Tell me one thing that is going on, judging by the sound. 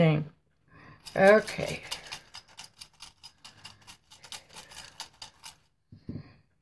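Small light pieces rattle and tumble inside a clay pot.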